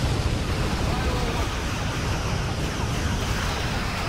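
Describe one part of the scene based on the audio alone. A large explosion booms.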